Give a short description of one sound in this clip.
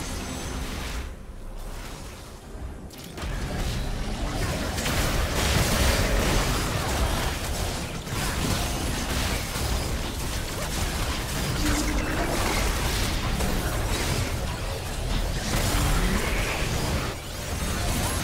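Spells and weapon blows crash and whoosh in a fierce fight.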